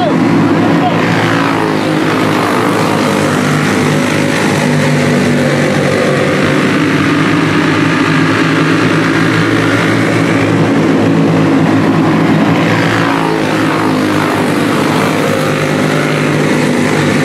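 Several small racing engines buzz loudly around a dirt track, rising and falling in pitch as they pass.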